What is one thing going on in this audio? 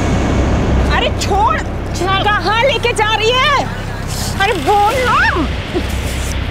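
A young woman shouts and cries out in distress.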